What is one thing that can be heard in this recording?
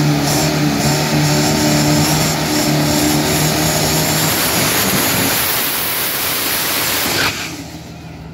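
A dragster engine roars loudly.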